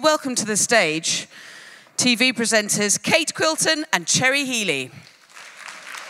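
A woman speaks with animation through a microphone in a large hall.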